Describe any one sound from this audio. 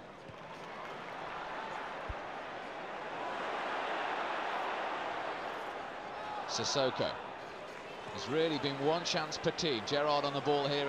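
A large stadium crowd roars steadily, swelling and then easing off.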